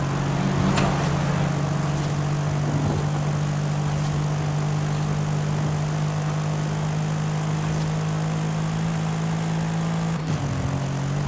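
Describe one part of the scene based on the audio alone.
A car engine roars at high speed with a steady drone.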